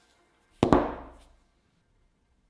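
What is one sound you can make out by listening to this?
A glass block clinks softly between gloved hands.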